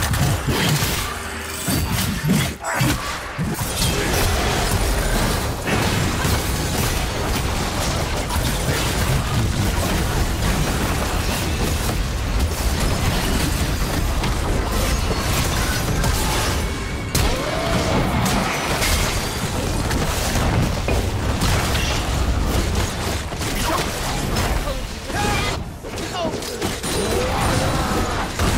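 Video game spells and attacks clash in a rapid fight.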